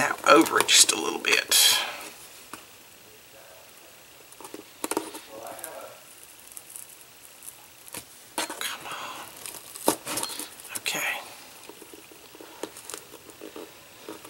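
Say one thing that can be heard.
A tool scrapes and taps against card.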